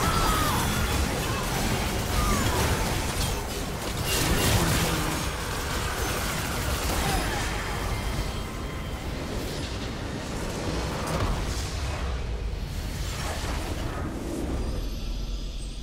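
Game spells and attacks clash and burst loudly.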